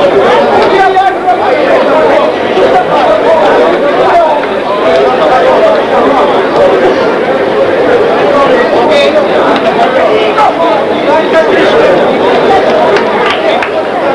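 A crowd talks and shouts loudly all around.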